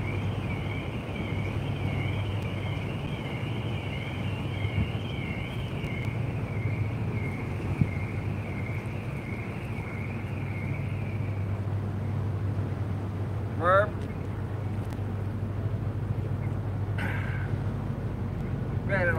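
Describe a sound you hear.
Wind rushes steadily outdoors by open water.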